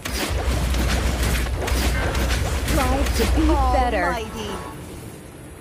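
Game battle effects crackle and clash loudly.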